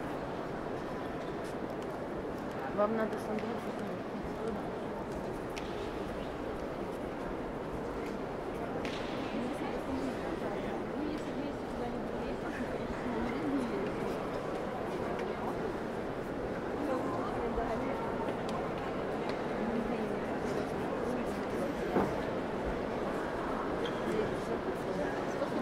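A crowd of visitors murmurs softly in a large echoing hall.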